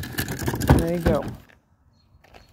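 A plastic bin lid rattles and knocks.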